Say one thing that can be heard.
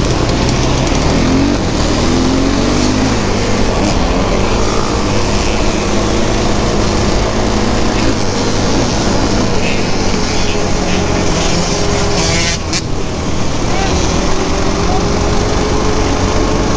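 A quad bike engine roars and revs up close.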